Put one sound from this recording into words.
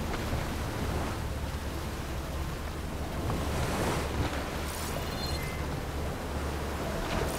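A boat's motor hums steadily.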